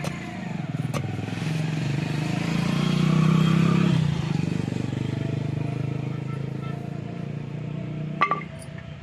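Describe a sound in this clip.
A motorcycle engine hums as it passes close by.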